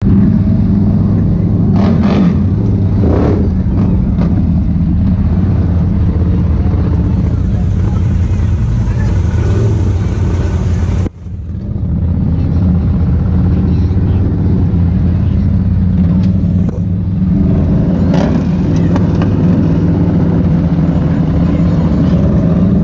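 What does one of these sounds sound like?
Other quad engines rumble nearby.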